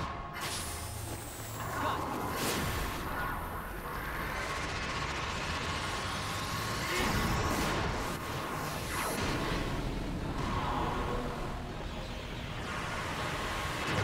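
Magical blasts whoosh and rumble through a video game battle.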